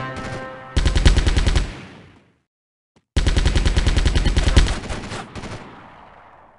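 A machine gun fires rapid bursts with echoing booms.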